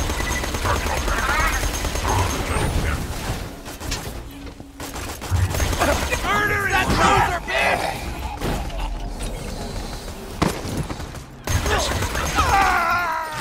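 Gunfire from a game weapon rattles in rapid bursts.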